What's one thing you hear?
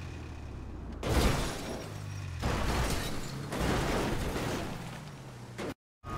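A vehicle crashes and tumbles with loud thuds.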